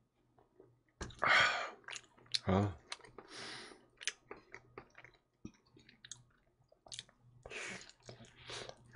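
A man bites into crisp pizza crust with a loud crunch close to a microphone.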